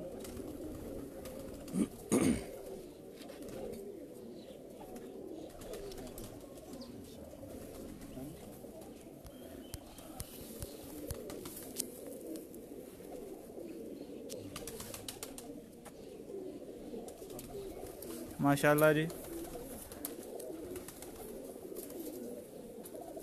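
Feathers rustle softly as hands handle a pigeon.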